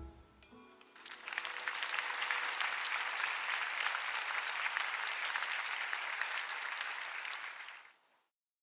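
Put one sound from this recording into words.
A large audience applauds loudly in a large hall.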